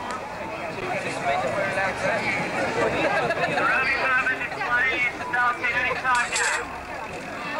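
Women talk and chatter nearby.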